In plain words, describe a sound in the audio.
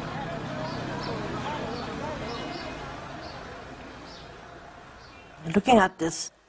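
A crowd murmurs and chatters in a busy street market.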